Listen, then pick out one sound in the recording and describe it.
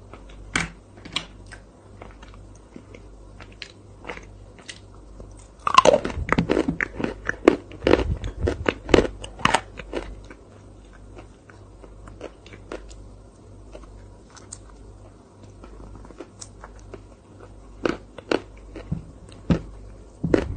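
A spoon scrapes and clinks against a glass up close.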